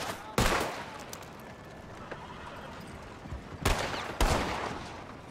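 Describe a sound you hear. Gunshots boom loudly, each followed by a ringing echo.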